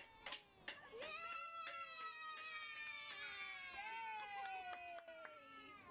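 A woman cheers in a high, sing-song voice.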